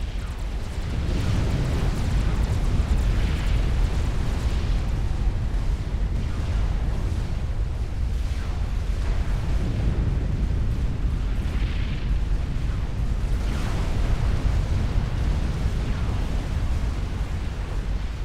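Explosions rumble and boom heavily without pause.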